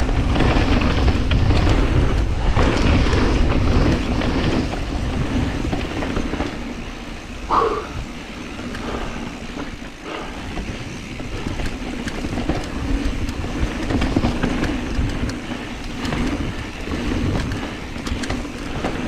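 Bicycle tyres crunch and rumble over a rough dirt trail.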